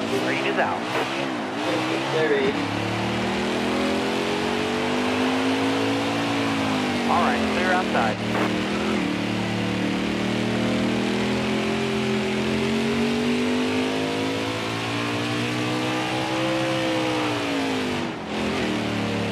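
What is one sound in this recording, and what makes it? A race truck engine roars loudly, its pitch rising and falling as it speeds up and slows.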